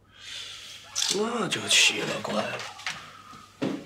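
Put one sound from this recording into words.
A man speaks quietly and tensely, close by.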